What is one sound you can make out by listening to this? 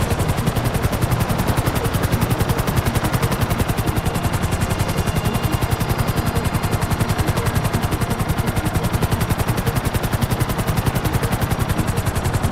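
Helicopter rotor blades thump rapidly and steadily close by.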